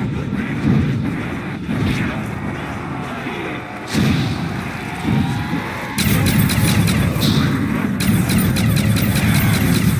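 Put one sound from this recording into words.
A gun fires bursts of rapid shots.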